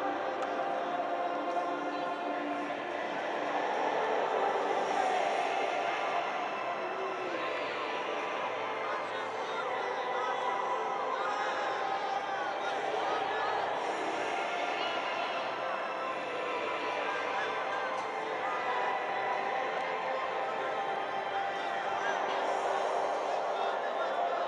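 A large stadium crowd sings and chants steadily, echoing around the stands.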